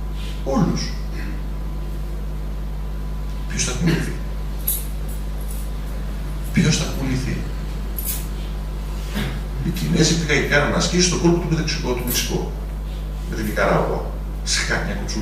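A middle-aged man speaks with animation through a microphone, with pauses.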